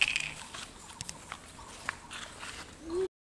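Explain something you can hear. A small ball bounces on stone paving.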